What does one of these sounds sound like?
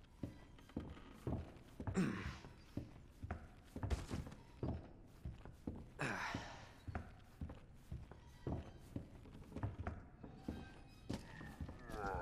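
Boots thud steadily on a wooden floor.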